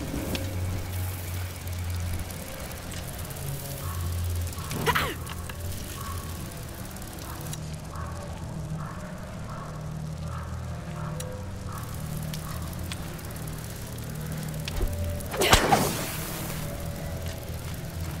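A fire crackles and pops nearby.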